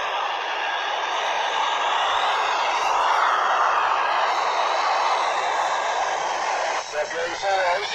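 A handheld radio hisses loudly with static.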